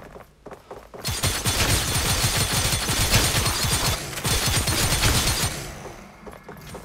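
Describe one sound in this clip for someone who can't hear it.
A machine gun fires in a rapid, steady burst.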